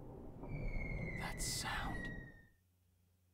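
A young man speaks quietly and uneasily.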